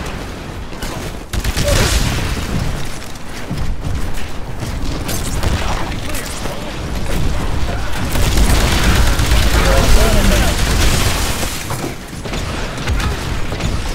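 A suppressed rifle fires in a video game.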